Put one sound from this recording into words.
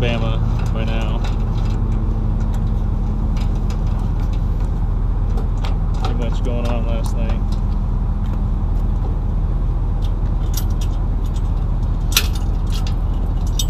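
A truck engine idles nearby with a steady low rumble.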